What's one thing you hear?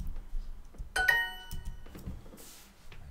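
A bright chime rings out in a short rising jingle.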